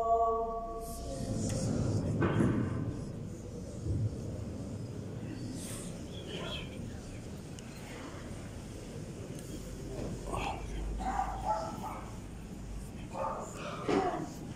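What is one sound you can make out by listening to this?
A large crowd of men murmurs and stirs in a large echoing hall.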